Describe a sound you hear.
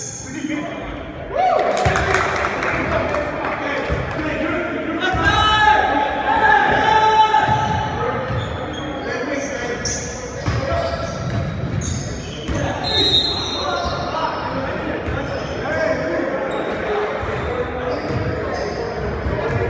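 Young men shout and call to each other across the court.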